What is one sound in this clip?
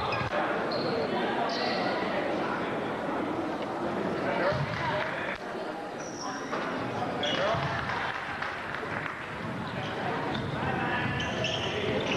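A crowd chatters and calls out in an echoing gym.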